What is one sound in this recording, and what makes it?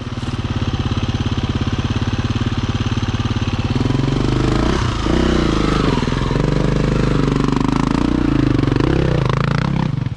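A dirt bike engine chugs and revs loudly up close.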